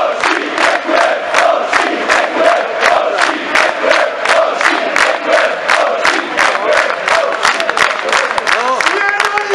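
A large crowd of men chants loudly along with the clapping.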